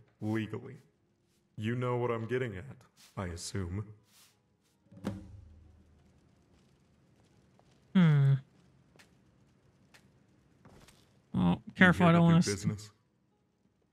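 A man speaks calmly and gruffly, close by.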